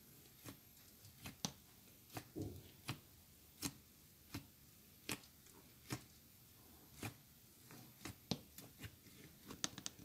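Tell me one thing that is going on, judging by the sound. Fingers squish and poke into soft slime with soft popping sounds.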